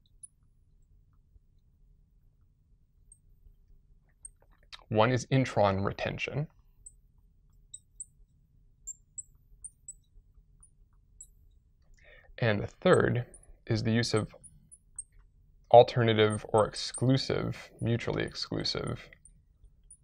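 A marker squeaks faintly on a glass board.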